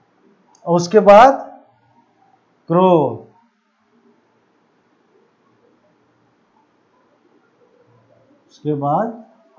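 A middle-aged man speaks in short, calm phrases, close by.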